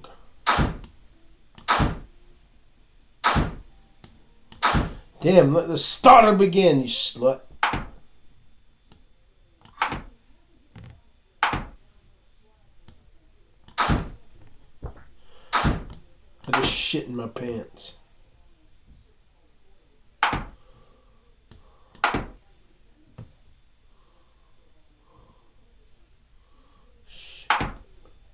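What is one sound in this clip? Short sharp clicks sound now and then as game pieces are moved.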